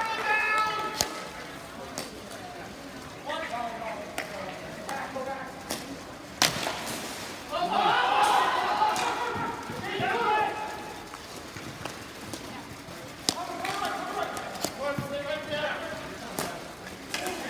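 Hockey sticks clack sharply against a ball.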